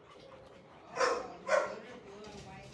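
A dog barks loudly nearby.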